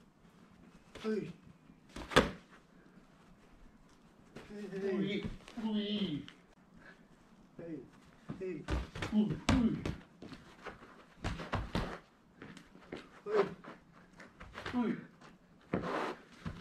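Gloved punches smack sharply against hand-held pads.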